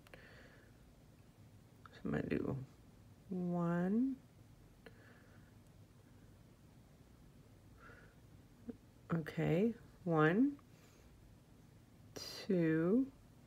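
Pliers click softly against a small metal ring.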